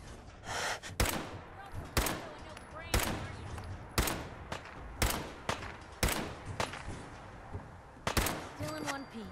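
Rifle shots ring out one after another, with a short echo after each.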